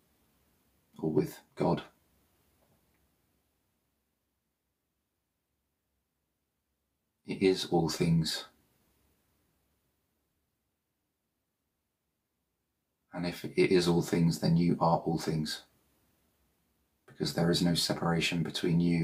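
A man speaks slowly and calmly, close to a microphone, with long pauses.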